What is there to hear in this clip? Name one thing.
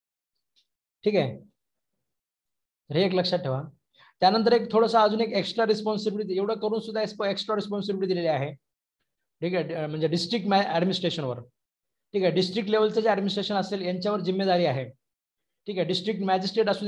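A young man speaks calmly and clearly into a close microphone.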